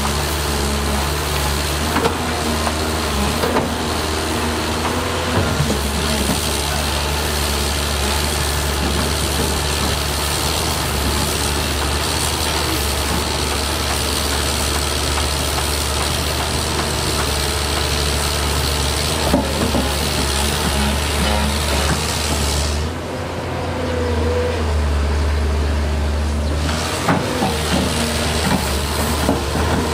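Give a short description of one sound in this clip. A diesel engine rumbles steadily and loudly close by.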